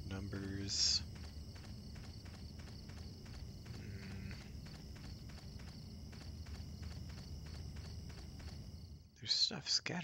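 Quick footsteps run across a stone floor.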